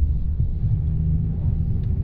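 A truck rumbles past close by.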